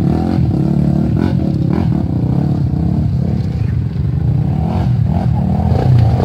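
A second dirt bike engine approaches and revs.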